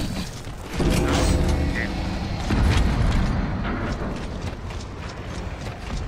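Fires roar and crackle nearby.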